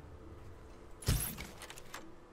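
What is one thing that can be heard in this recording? A crossbow fires with a sharp snap.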